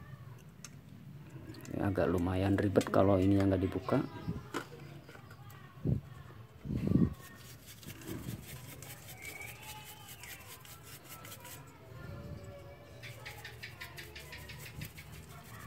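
A stiff brush scrubs briskly over a metal part.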